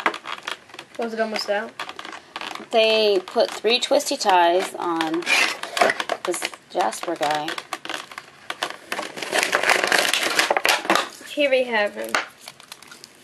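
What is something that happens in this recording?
A young child talks and sings in a high voice, close by.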